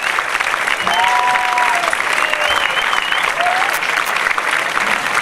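A large crowd applauds and cheers loudly in a big echoing hall.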